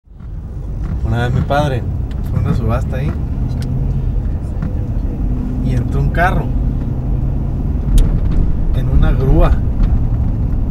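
A man speaks cheerfully and laughs close by.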